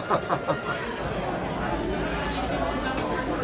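A crowd murmurs in a busy hall.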